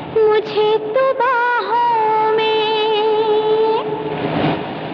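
A man sings long, drawn-out notes.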